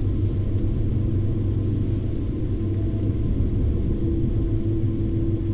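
A train rumbles steadily along the rails at speed.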